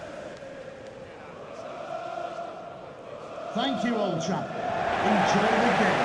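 A large stadium crowd cheers and chants.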